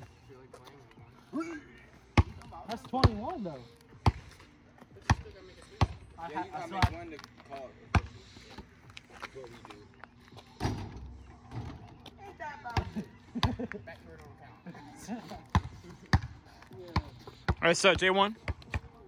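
A basketball bounces on asphalt with sharp thuds.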